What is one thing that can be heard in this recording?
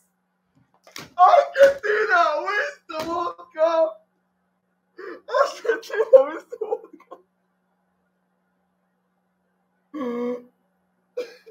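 A young man sobs close by.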